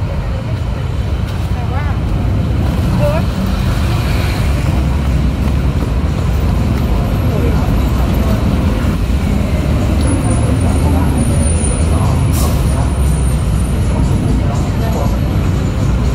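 A busy crowd murmurs and chatters all around outdoors.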